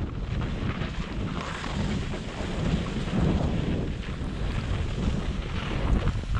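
Wind rumbles over the microphone outdoors.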